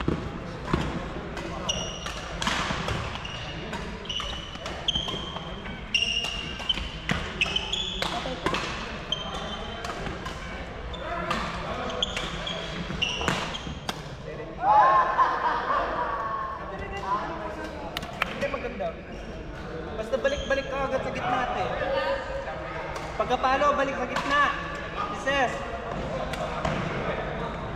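Rackets smack shuttlecocks in a large echoing hall.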